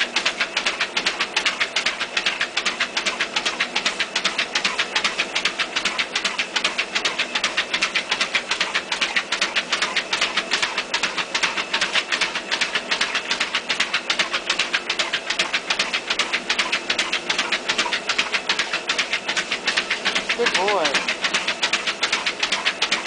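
A dog laps water rapidly and noisily.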